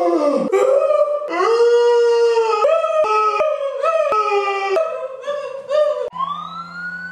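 A young woman sings loudly with animation.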